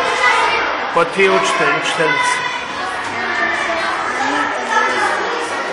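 Children chatter in the background.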